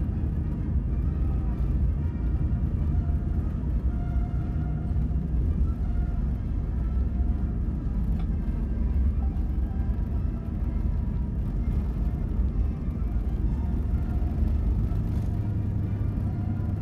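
A jet engine roars steadily as an airliner rolls along a runway.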